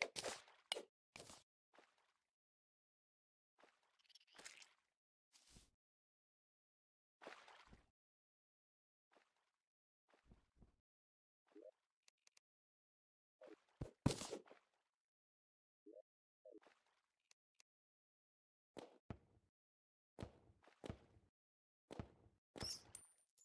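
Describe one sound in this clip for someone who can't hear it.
Short game sound effects chirp and thud in bursts, as a character digs through rock.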